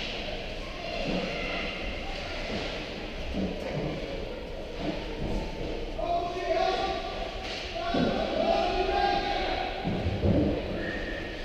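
Hockey sticks knock pucks with sharp clacks.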